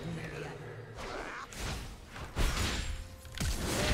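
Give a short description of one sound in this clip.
Magic blasts and weapon hits crash in a busy fight.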